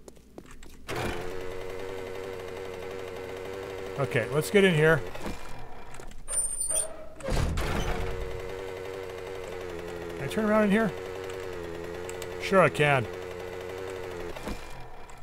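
A small motorbike engine hums steadily.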